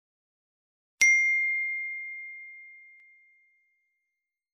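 A bell chimes once and slowly rings out.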